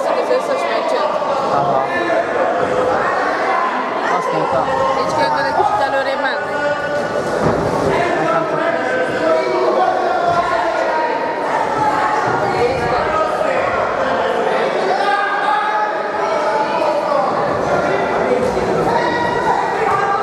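A crowd of spectators shouts and cheers throughout in an echoing hall.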